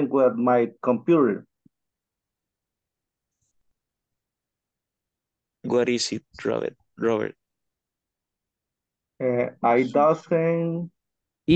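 A man speaks clearly through an online call, in short phrases with pauses.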